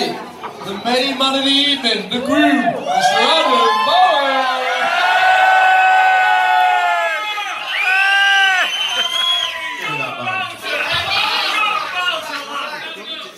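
Several young men sing loudly together into a microphone, holding long notes.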